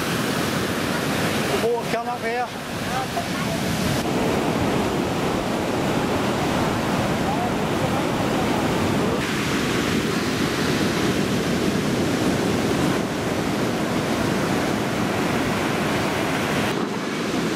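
Surf crashes and roars onto a beach.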